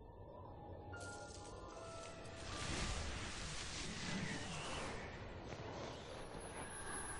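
Wind gusts and rustles through tall flowers.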